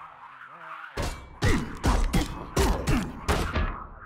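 A spiked mace strikes a body with heavy, wet thuds.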